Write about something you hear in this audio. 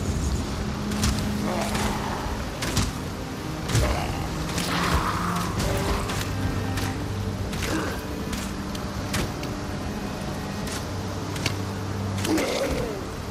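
Arrows fly and strike with sharp thuds in quick bursts.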